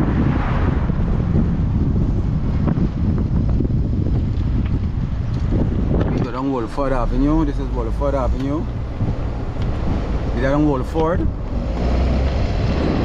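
A car drives steadily along a road with a low rumble.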